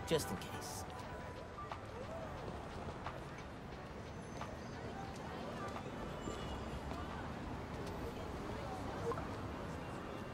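Footsteps crunch softly on snow.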